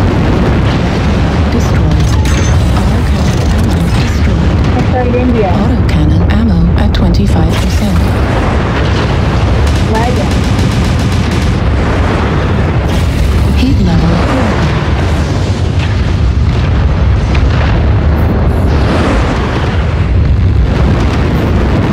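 A heavy engine rumbles low and steadily.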